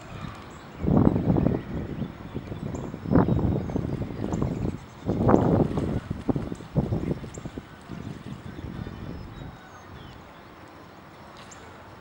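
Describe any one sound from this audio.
Ducks dabble and splash gently at the water's surface.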